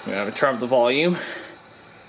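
A button clicks on a portable set.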